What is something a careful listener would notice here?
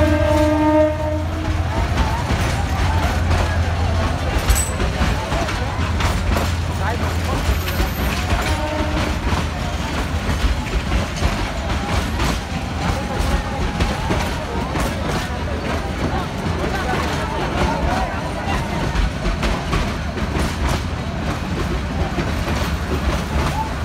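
A train rumbles past close by with clattering wheels.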